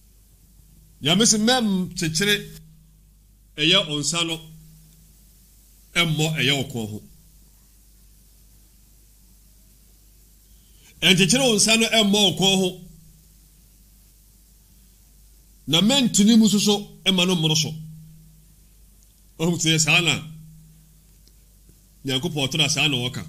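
A man speaks with animation into a close microphone, in short bursts with pauses.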